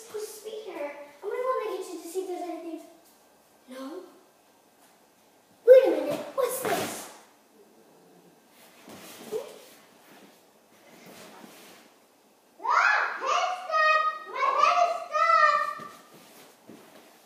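A young girl talks and calls out with animation close by.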